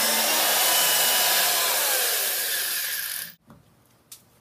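A power drill whirs loudly close by.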